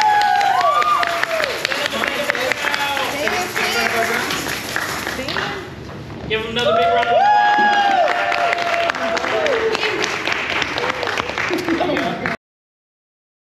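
Children shout and cheer together.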